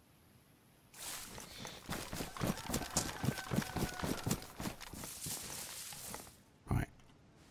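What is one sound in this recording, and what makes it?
Footsteps swish and rustle through tall grass.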